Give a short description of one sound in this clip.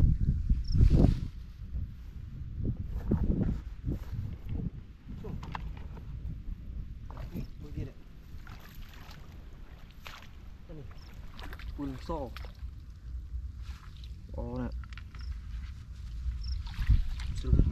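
Feet splash and squelch through shallow muddy water.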